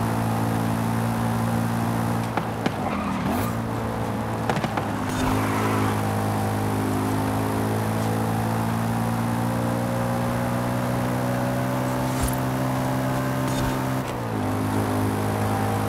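A car engine roars loudly at high speed, dipping briefly as it slows and then climbing again.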